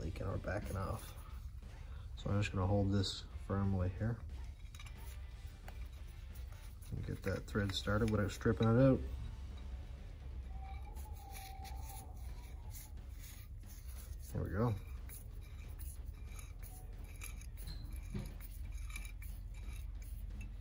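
A screwdriver scrapes and taps against a metal part.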